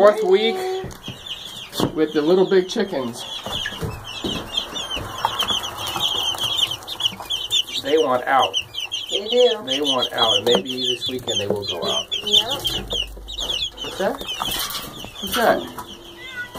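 Many chicks peep constantly at close range.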